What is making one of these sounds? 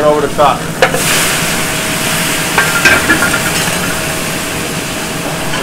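Hot liquid hisses and sizzles loudly as it is poured into a hot pot.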